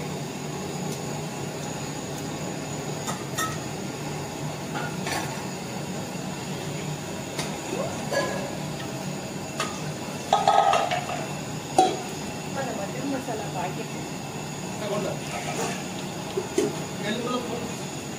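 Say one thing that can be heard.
Liquid pours from a metal pot into a larger pot.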